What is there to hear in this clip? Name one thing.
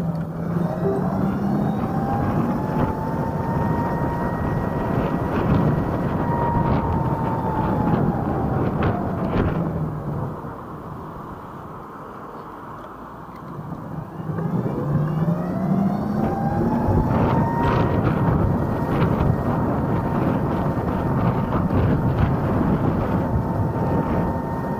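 An electric motor whines, rising in pitch as it speeds up and falling as it slows.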